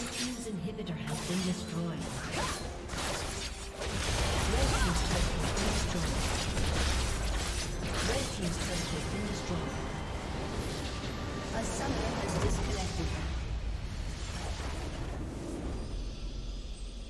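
Game spell effects whoosh and clash rapidly.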